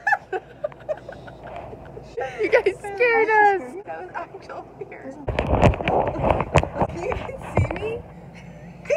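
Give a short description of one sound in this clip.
Young women laugh close by.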